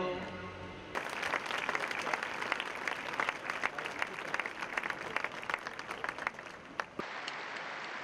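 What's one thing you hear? A large crowd claps and applauds outdoors.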